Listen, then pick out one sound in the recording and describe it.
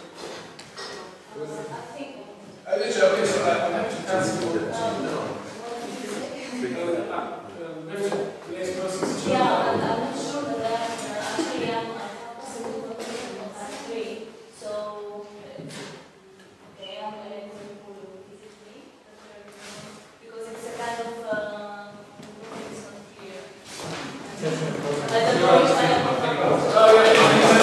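A woman speaks with animation to a group in a large echoing hall.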